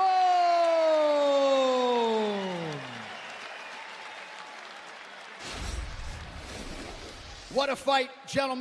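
A large crowd cheers and murmurs.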